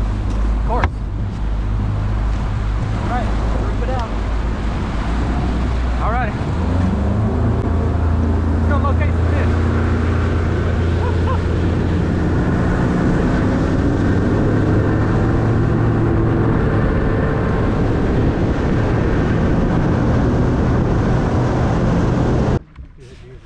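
Water splashes against a boat's hull.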